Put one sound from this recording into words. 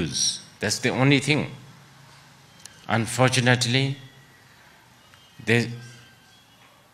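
An elderly man speaks calmly into a microphone in short phrases, with pauses.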